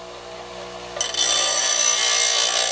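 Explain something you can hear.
A bench grinder grinds metal with a harsh, loud hiss.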